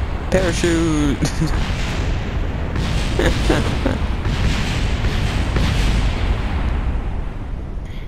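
Explosions roar and rumble loudly.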